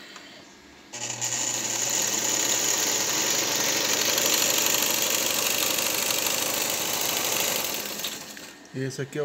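A sewing machine whirs steadily as it stitches fabric.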